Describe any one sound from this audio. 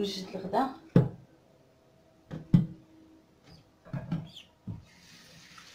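Kitchenware knocks against a metal sink.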